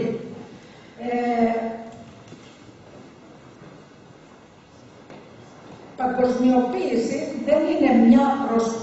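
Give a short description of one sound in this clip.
An elderly woman speaks slowly into a microphone, heard through loudspeakers.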